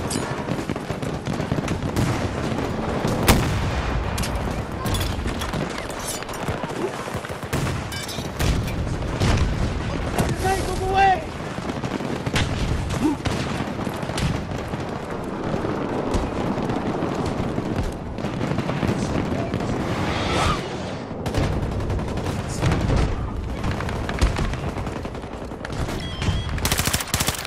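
Gunshots crack and explosions boom.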